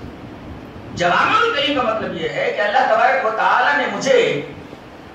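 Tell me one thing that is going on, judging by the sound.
A middle-aged man speaks with animation into a microphone, heard through a loudspeaker in an echoing room.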